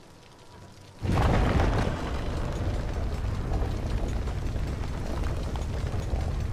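A heavy metal wheel grinds and rumbles as it turns.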